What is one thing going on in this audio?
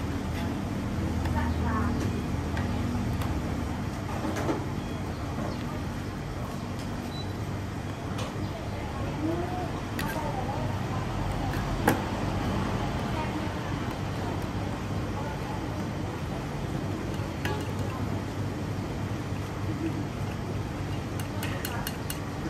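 A ladle scoops and sloshes broth in a large pot.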